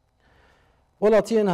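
A man speaks steadily into a microphone, like a news presenter.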